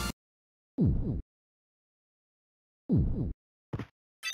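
A deep whooshing boom sounds twice in a video game.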